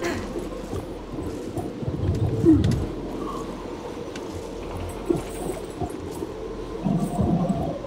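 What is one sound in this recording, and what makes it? A soldier's clothing and gear rustle as he crawls and shifts along a stone wall.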